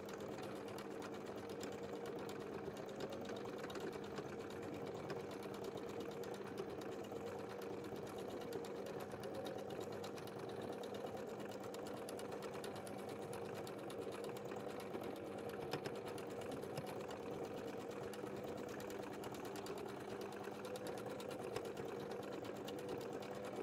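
A sewing machine runs steadily, its needle tapping fast.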